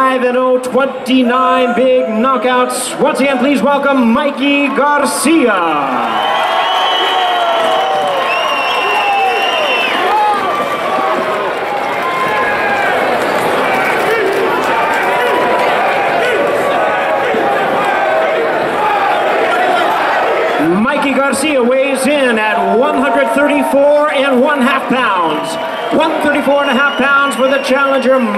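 A man announces loudly over a loudspeaker in a large echoing hall.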